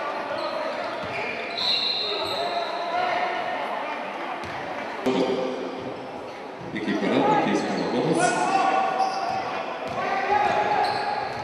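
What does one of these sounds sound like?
Spectators murmur and call out in a large echoing hall.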